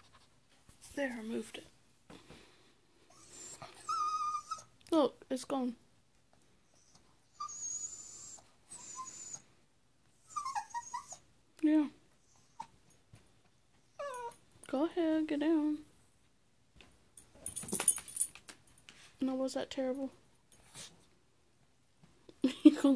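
A small dog whines and yips close by.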